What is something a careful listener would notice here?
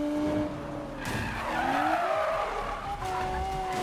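Tyres screech as a car drifts around a corner.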